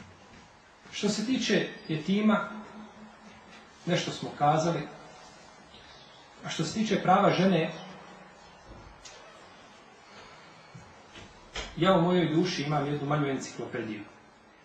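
A man speaks calmly into a microphone, in pauses.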